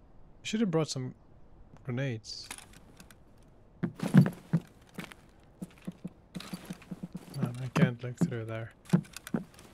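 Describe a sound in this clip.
A young man talks casually into a close microphone.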